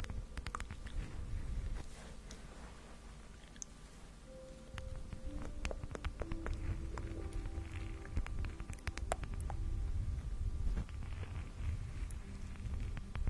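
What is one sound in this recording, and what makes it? Long fingernails tap and scratch on a wooden lid close to a microphone.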